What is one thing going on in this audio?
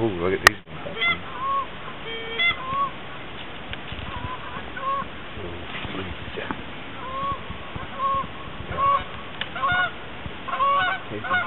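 Birds call out now and then across an open field.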